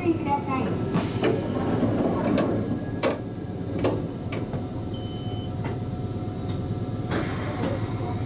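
Train wheels clack over rail joints.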